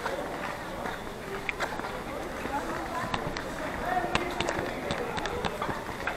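Footsteps scuff along a paved path outdoors.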